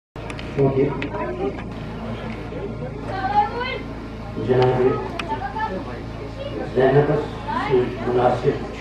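A middle-aged man speaks with feeling into a microphone, his voice amplified and echoing outdoors.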